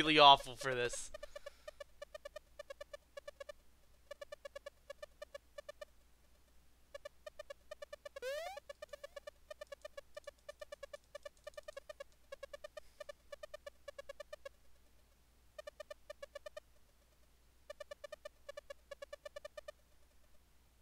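Rapid electronic blips chirp in quick bursts, like text being typed out.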